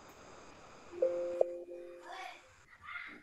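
A computer alert chime sounds once.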